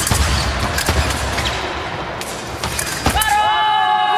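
Fencing blades clash with sharp metallic clicks in an echoing hall.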